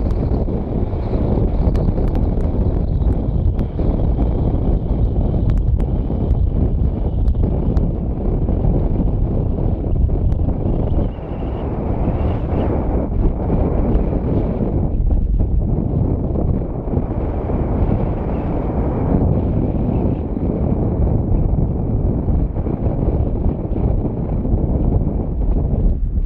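Lava roars and rumbles steadily.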